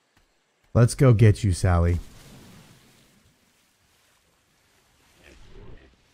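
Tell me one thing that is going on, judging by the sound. Water splashes softly around a swimmer.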